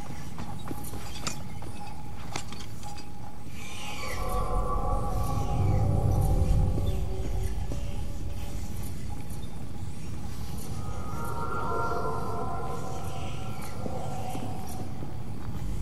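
Many rats squeak and scurry nearby.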